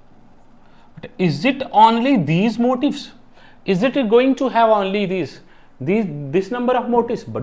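A man speaks to listeners through a clip-on microphone, explaining with animation.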